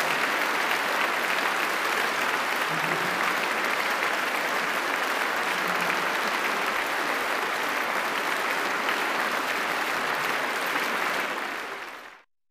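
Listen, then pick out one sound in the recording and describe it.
A large audience applauds steadily in a big echoing hall, then the clapping quickly fades away.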